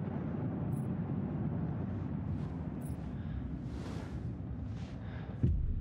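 Hands rummage through a wooden crate.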